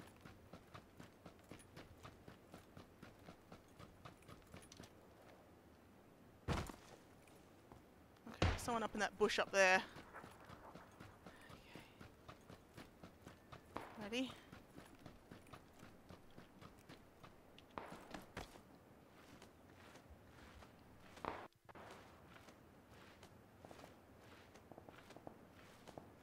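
Footsteps crunch quickly over gravel and sand.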